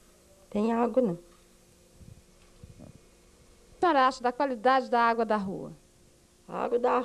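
A middle-aged woman speaks close into a handheld microphone, in short bursts with pauses.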